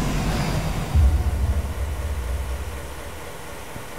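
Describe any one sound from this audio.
A deep booming thud rumbles briefly.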